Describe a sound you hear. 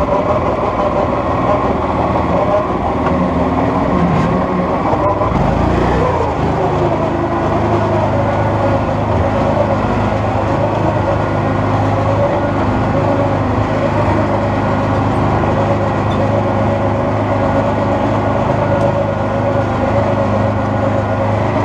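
An off-road vehicle's engine rumbles and strains steadily up close.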